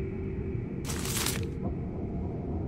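A sheet of paper rustles as it is picked up.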